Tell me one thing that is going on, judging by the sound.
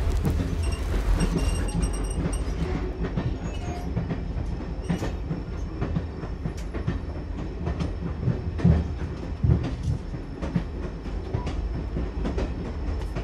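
A steam locomotive rumbles past at close range.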